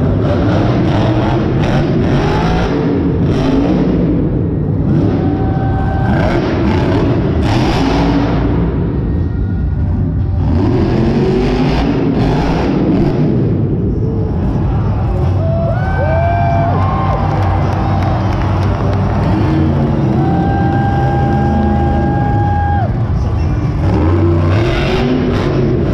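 A monster truck engine roars loudly in a large echoing arena.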